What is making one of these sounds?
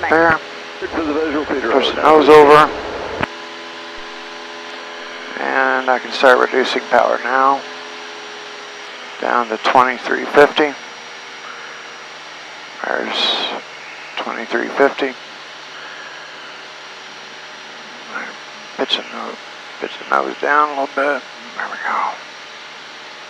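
A man talks calmly in short bursts over a headset intercom.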